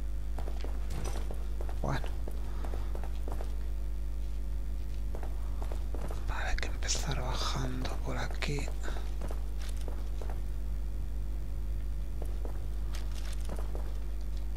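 Footsteps tread slowly on a wooden floor.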